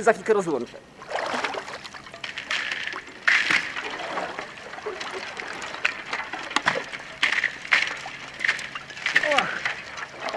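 Water splashes as a man wades.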